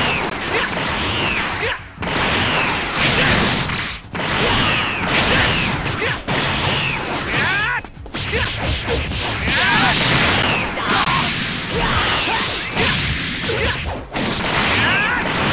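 Energy blasts whoosh and crackle in a video game fight.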